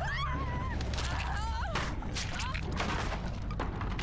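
Wooden boards splinter and crack as they are smashed.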